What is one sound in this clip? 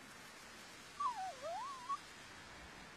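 A dog gives a short, high whine.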